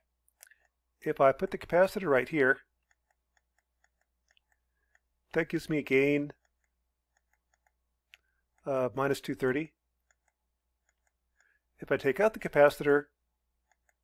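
A man speaks calmly and explains into a close microphone, in short bursts with pauses.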